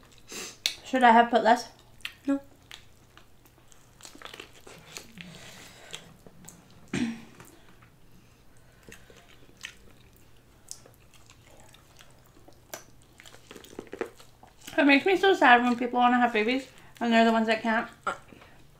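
Wet food squelches and crackles as hands pull it apart.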